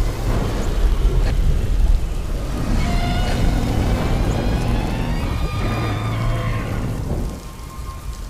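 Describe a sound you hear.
A huge beast roars loudly.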